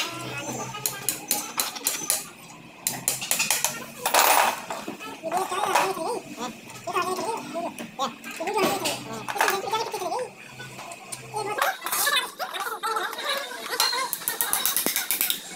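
Metal tools clink and scrape against an engine.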